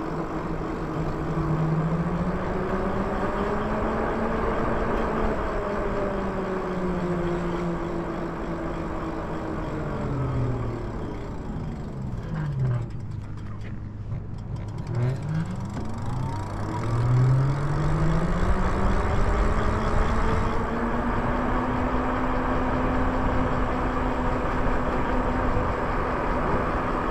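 An electric motor whines, dropping in pitch as the bike slows, then rising again as it speeds up.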